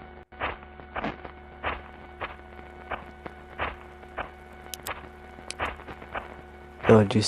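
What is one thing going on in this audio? Footsteps crunch steadily over dry leaves and twigs.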